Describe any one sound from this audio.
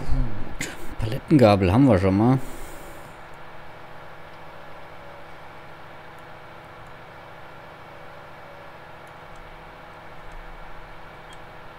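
A tractor engine hums steadily while driving.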